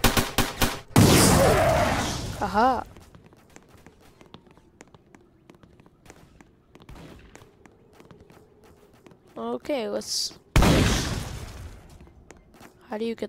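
A grenade explodes with a loud boom that rumbles away.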